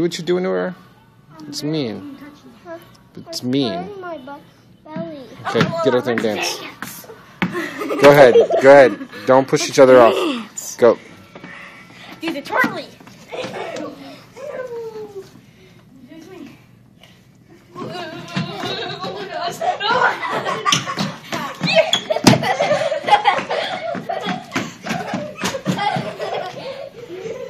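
Young children talk and shout excitedly close by.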